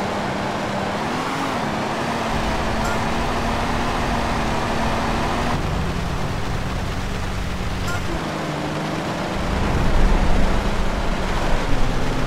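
A car engine hums steadily as the car drives over rough ground.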